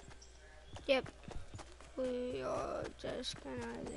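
Quick footsteps patter across the ground.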